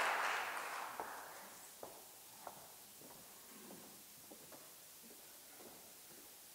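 Footsteps tap across a wooden floor.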